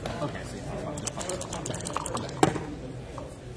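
Dice rattle in a cup and clatter onto a table.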